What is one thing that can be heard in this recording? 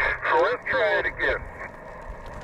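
A man's voice comes through a radio loudspeaker, crackly and thin.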